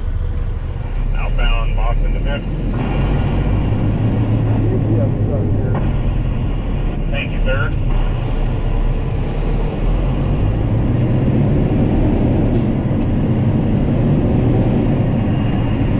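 A big truck engine rumbles steadily from inside the cab.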